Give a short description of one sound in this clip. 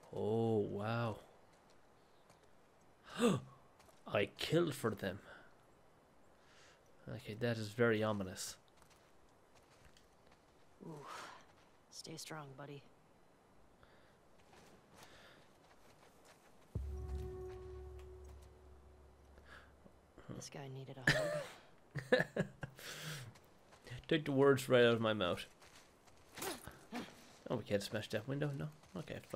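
Footsteps walk softly over grass and concrete.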